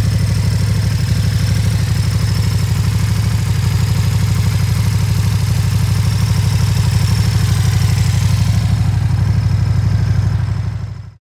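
A motorcycle engine idles close by with a deep, steady throb.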